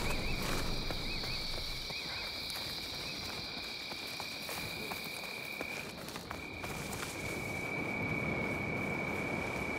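Footsteps rustle through undergrowth.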